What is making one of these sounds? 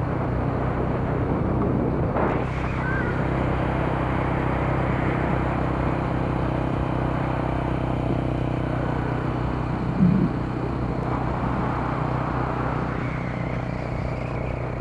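Air bubbles gurgle from a swimmer underwater.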